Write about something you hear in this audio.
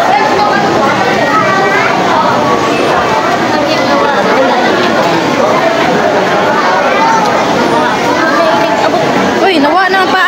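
A crowd of people chatter all around indoors.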